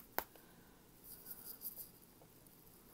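Plastic wrapping crinkles softly.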